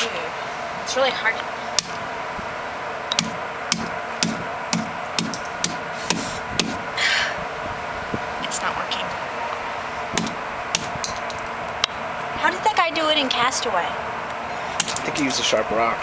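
A coconut knocks against concrete.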